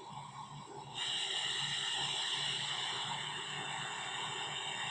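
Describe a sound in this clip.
Wind rushes loudly past a fast-moving car.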